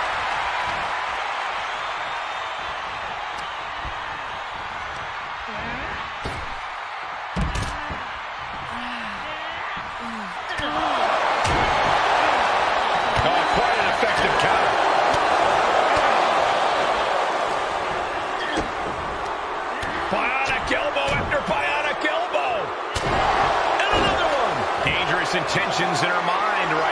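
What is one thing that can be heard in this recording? A large crowd cheers and roars, swelling louder partway through.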